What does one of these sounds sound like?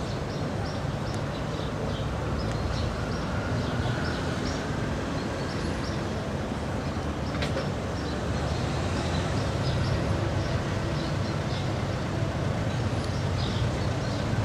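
An old bus engine rumbles as the bus drives slowly closer.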